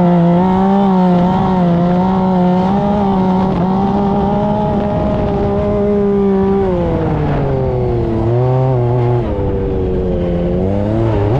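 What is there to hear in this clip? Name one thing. A dune buggy engine roars loudly, its pitch rising and falling with the throttle.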